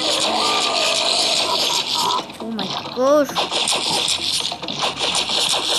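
Cartoon squelching sounds come as a slime monster is hit.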